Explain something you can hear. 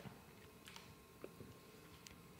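A man bites into a crunchy cookie.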